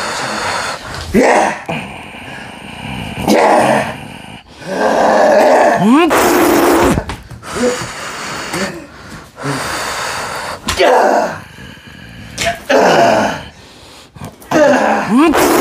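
A young woman screams and wails wildly.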